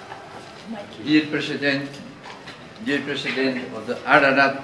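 An elderly man speaks calmly into a microphone, reading out.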